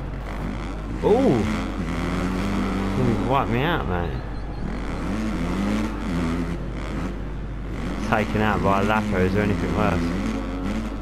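Engines of other motorcycles whine close by.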